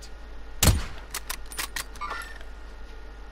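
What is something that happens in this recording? A rifle bolt clicks and clacks as it is worked.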